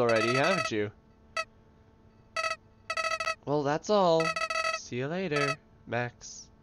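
Quick electronic beeps chatter in short bursts.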